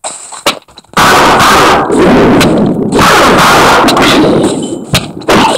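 Thunder crashes and rumbles loudly.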